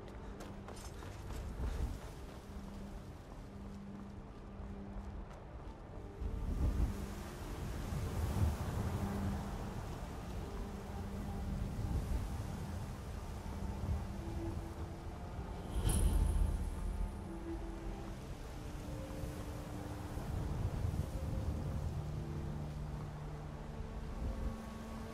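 Armoured footsteps thud and crunch on stone and dry grass.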